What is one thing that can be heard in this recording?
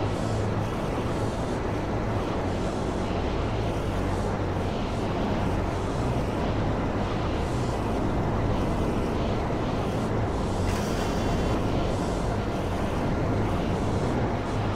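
A jet-powered flying motorbike roars in flight.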